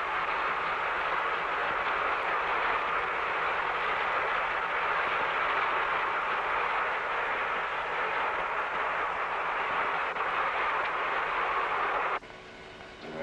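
Water rushes and hisses steadily underwater.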